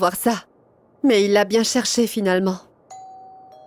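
An older woman answers calmly, close by.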